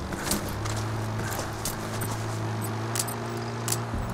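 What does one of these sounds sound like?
A body crawls and scrapes slowly through grass.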